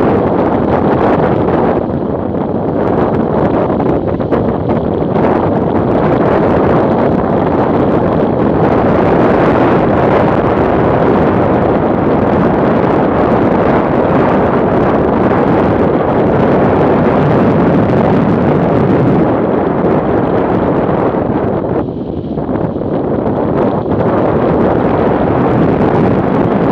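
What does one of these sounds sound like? Wind roars loudly past the rider on a moving motorcycle.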